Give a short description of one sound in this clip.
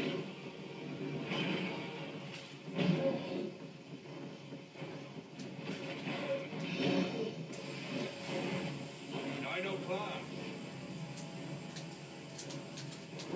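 Game dinosaurs roar and clash through a television speaker.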